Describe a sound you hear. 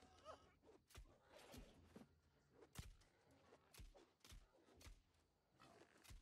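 Sword blows strike a creature with sharp thuds.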